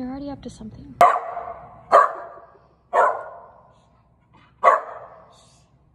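A dog barks loudly several times.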